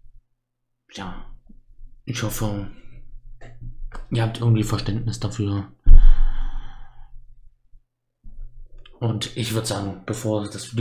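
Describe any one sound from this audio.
A young man speaks calmly and close into a microphone, in short bursts with pauses.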